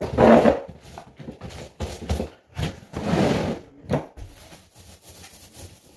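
A paint roller knocks and splashes in a plastic bucket.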